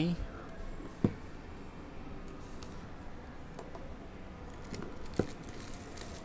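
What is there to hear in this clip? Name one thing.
Cardboard boxes knock against a table.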